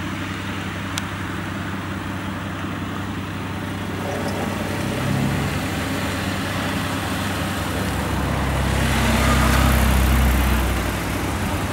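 A vehicle engine rumbles as it approaches and drives past close by.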